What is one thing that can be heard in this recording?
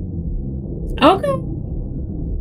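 A monster lets out a short, loud roar.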